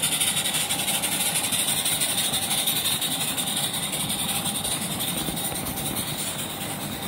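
A model steam locomotive hisses as it chugs along.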